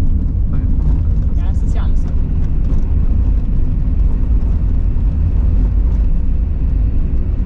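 A car engine rumbles steadily from inside the car.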